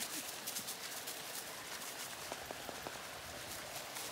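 A stream rushes over rocks nearby.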